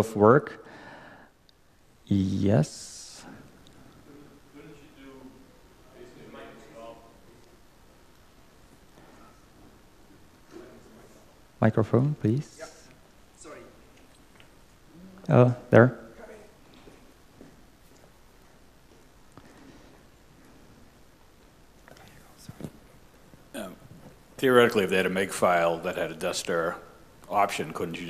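A young man speaks into a microphone, in short bursts with long pauses.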